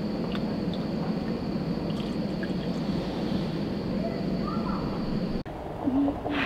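Hot liquid pours from a ladle into a glass.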